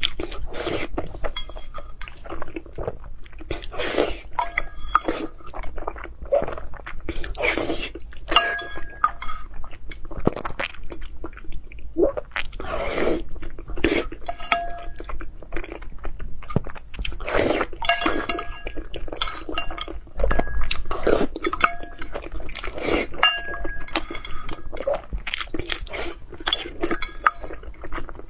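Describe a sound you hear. A young woman slurps and chews food loudly and close up.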